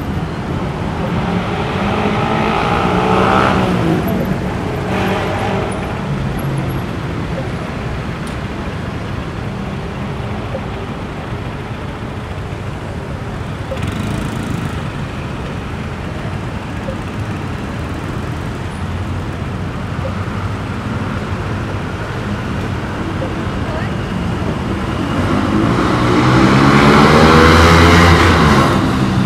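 Traffic rumbles steadily past outdoors.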